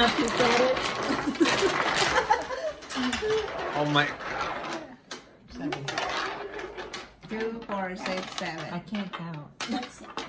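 Domino tiles clatter and click on a wooden table.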